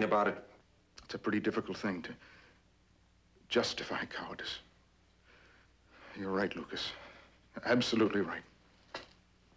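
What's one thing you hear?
A middle-aged man speaks calmly and seriously, close by.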